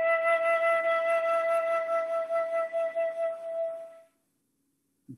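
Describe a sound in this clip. A flute plays a sustained melody over an online call.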